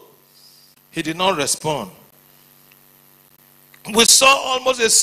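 A man preaches with animation into a microphone.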